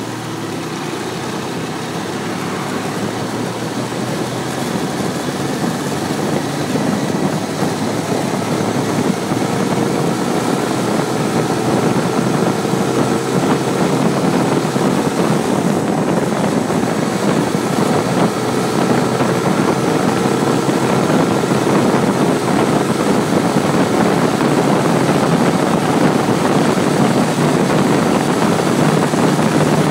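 A motorcycle engine hums steadily as it speeds up.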